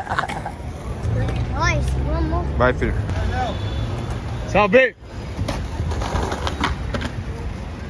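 Skateboard wheels roll over concrete with a low rumble.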